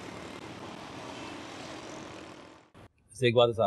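Traffic rumbles steadily along a busy road.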